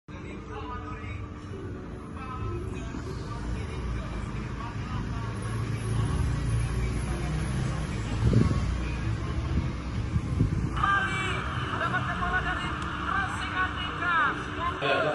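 Football commentary and crowd noise play from a laptop.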